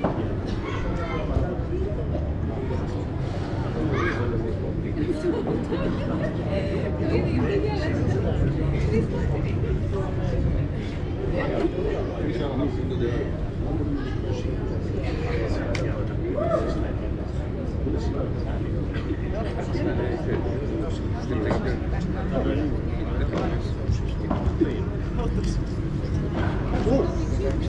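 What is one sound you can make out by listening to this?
A ball bounces off glass walls with dull thuds.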